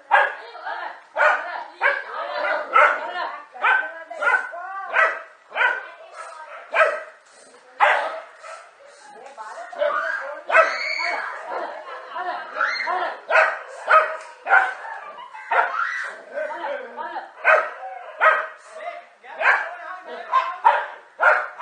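Dogs bark and snarl excitedly close by.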